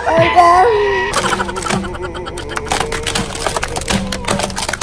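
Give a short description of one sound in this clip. A car tyre crushes a cardboard box with a crackling crunch.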